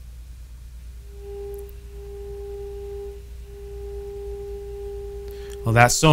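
An old valve radio sounds a steady, humming whistle.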